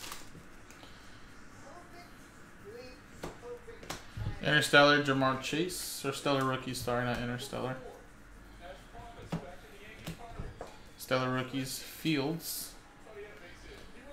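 Cards slide and flick against each other.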